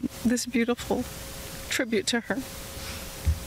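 A woman speaks briefly through a microphone outdoors.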